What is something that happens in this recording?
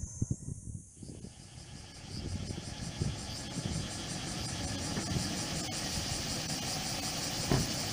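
A large bus engine hums close by as the bus pulls past.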